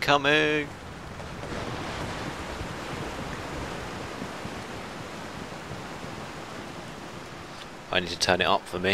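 Waves wash and splash against a sailing ship's hull.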